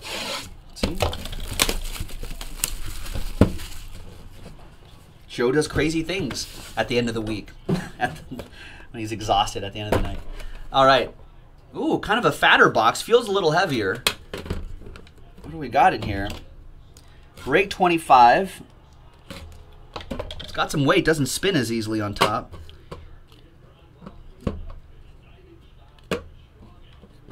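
Cardboard packaging rustles and scrapes under handling.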